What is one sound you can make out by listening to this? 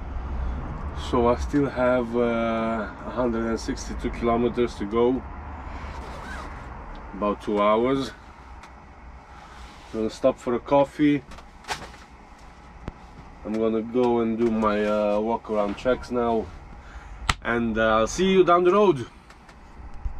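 A man talks calmly and casually, close by.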